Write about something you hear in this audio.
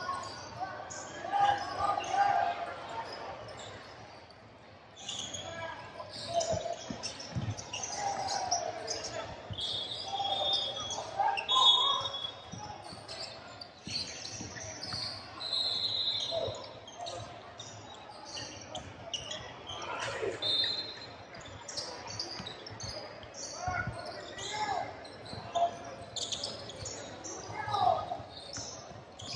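Spectators call out and cheer from around the court.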